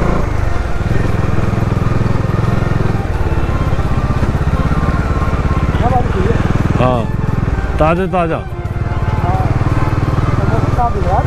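A motorcycle engine hums with a steady, rapid throb as the bike rides along.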